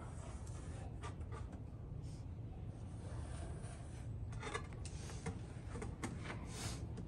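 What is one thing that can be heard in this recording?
A trowel scrapes against a rough wall surface.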